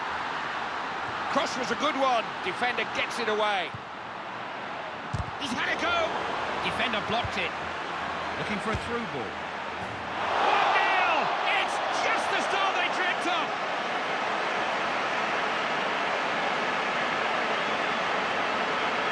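A stadium crowd roars and swells into a cheer.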